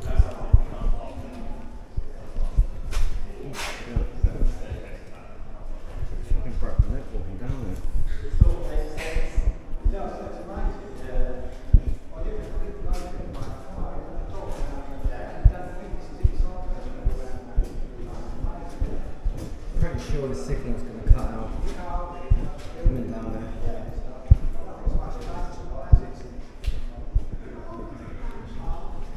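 Footsteps thud down stone steps in an echoing tunnel.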